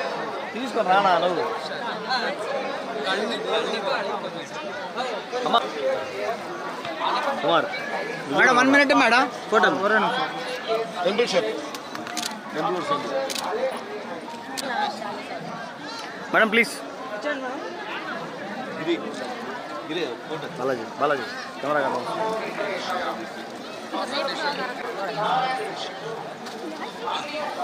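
A crowd of men and women talk and call out all around, close by.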